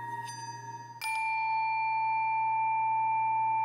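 A mallet strikes a metal bowl, which rings out loudly and lingers.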